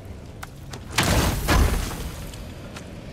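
A heavy chest lid creaks and thuds open.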